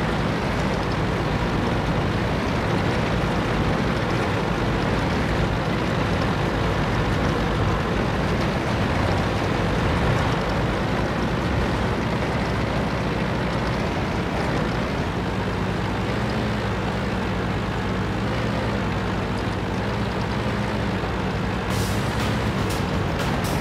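A tank engine rumbles steadily as the tank drives over sand.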